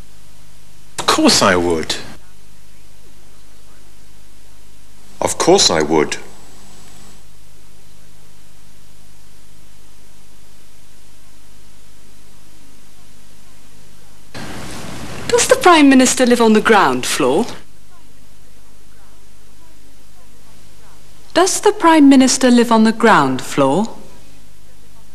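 A woman speaks clearly and calmly at close range.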